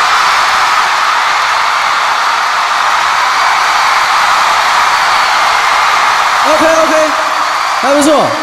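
A large crowd screams and cheers in a big echoing hall.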